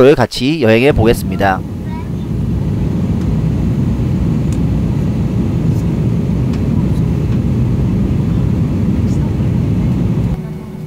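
A jet airliner's engines drone steadily in flight, heard from inside the cabin.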